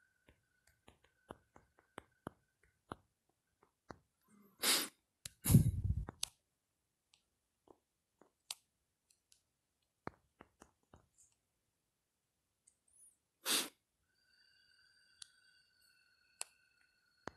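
Quiet taps click on a phone keyboard.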